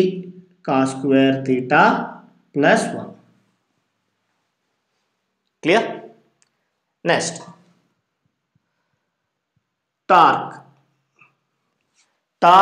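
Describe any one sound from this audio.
A man speaks calmly in short phrases with pauses, as if explaining, close by.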